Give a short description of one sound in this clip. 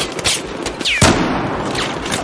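A sniper rifle fires a single loud shot that echoes.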